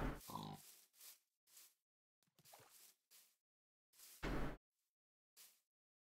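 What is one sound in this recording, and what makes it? Footsteps pad softly on grass.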